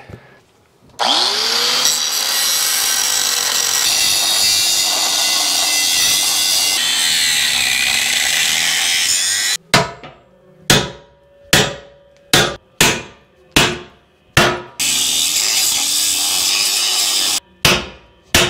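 An angle grinder whines loudly against metal.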